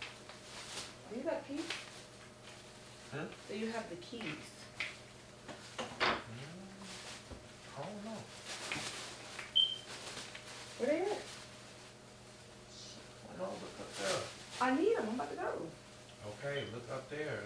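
A woman talks quietly in the room.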